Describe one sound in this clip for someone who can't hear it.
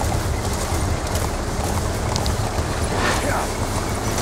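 A horse gallops with heavy thudding hoofbeats.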